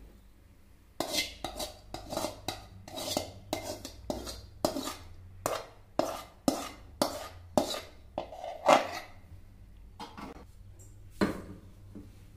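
A metal spoon scrapes against a metal pan again and again.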